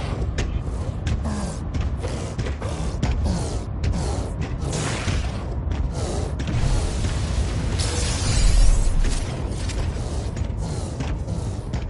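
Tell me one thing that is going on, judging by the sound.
Heavy mechanical footsteps thud and clank steadily.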